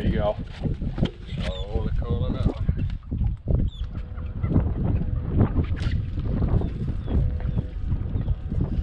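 Water laps against a boat's hull.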